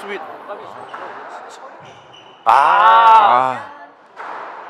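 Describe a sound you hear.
Rubber shoe soles squeak on a wooden court floor.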